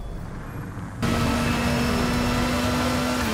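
A motorcycle engine roars steadily at speed.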